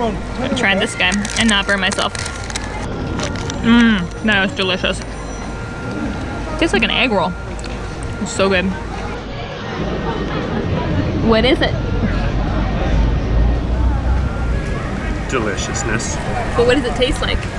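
A busy street crowd murmurs in the background outdoors.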